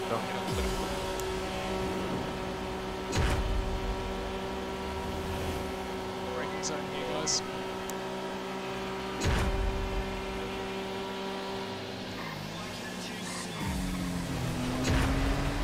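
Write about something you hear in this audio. A car engine hums steadily, dipping briefly and then climbing in pitch near the end.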